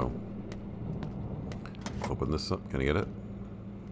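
A metal panel door clanks open.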